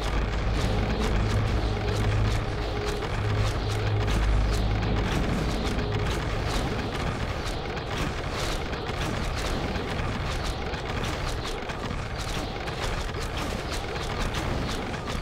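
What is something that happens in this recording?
Game weapons clash and hit repeatedly.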